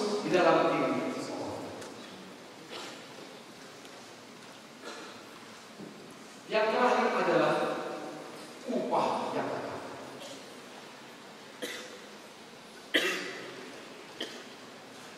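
A young man speaks with animation through a microphone and loudspeakers in a large echoing hall.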